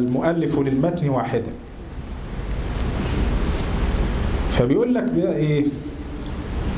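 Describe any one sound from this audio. A man chants in a melodic voice through a microphone.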